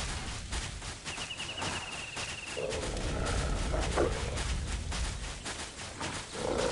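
Hooves gallop steadily over hard ground.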